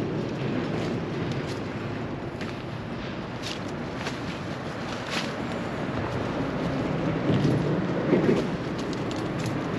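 Leaves rustle and twigs crack as a man pushes through dense undergrowth.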